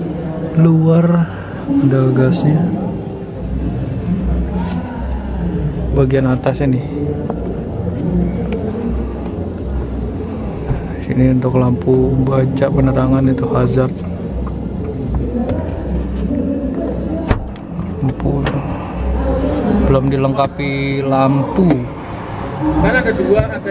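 A man talks steadily close by.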